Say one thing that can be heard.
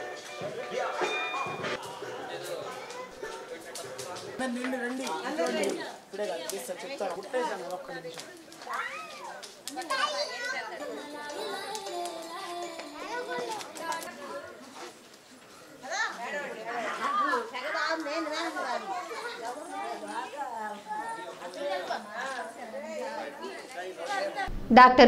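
A crowd of women and men chatter and call out nearby.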